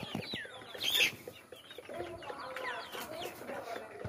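Chickens flap their wings briefly.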